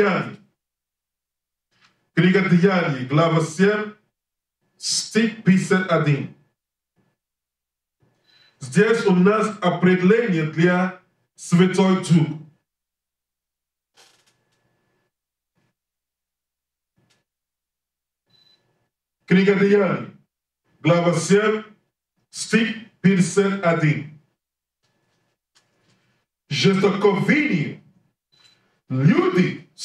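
A man reads aloud into a microphone in bursts, with long pauses between phrases.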